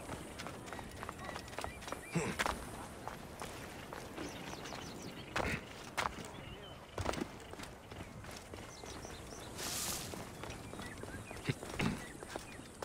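Footsteps patter over stone and dirt.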